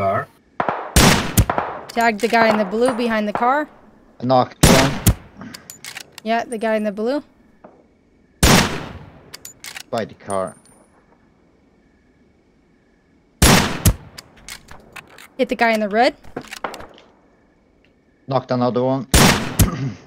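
Sniper rifle shots crack sharply.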